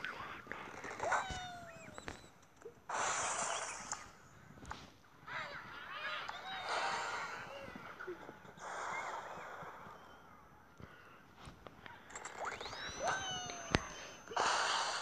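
A bird launches from a slingshot.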